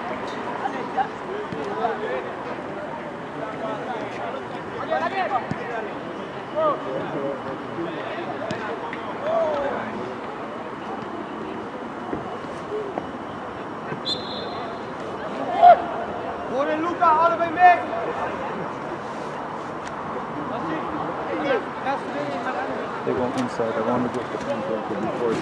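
Young players shout and call to each other from a distance on an open pitch outdoors.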